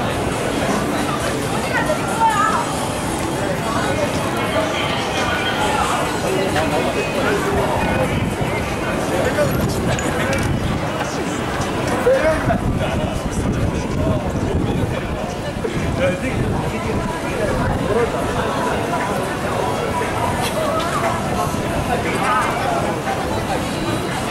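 A crowd of pedestrians chatters nearby throughout, outdoors on a busy street.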